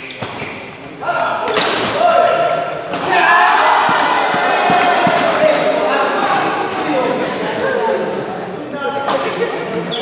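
A crowd of men talks and shouts loudly.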